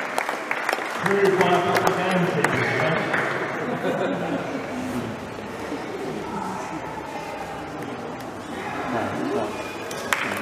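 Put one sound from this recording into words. An elderly man speaks through a microphone and loudspeaker in a large echoing hall.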